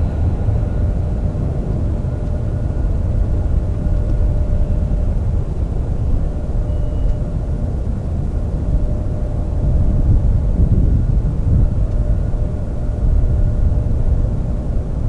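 Wind rumbles across an open outdoor space.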